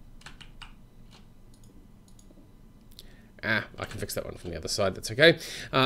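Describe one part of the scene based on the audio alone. Digging crunches softly in a video game.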